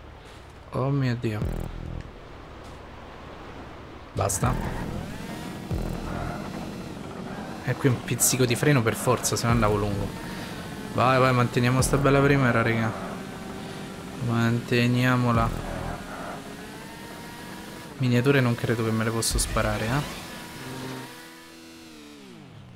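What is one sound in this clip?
A motorbike engine hums steadily as the bike speeds along.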